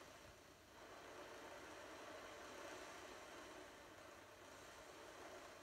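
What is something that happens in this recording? A television plays sound quietly in the room.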